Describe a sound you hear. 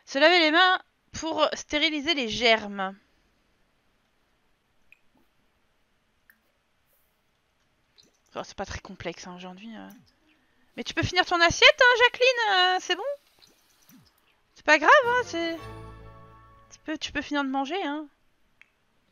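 A woman talks with animation into a headset microphone, in bursts.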